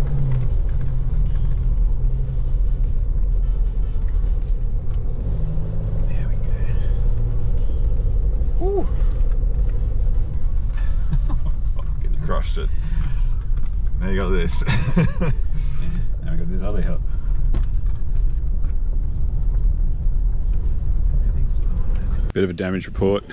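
A car engine rumbles steadily while driving over a rough track.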